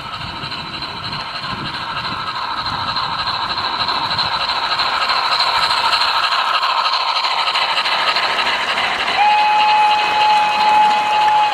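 A model train rumbles and clatters along the track, growing louder as it approaches.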